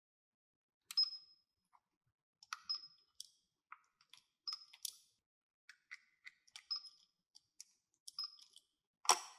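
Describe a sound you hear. A toy scanner beeps.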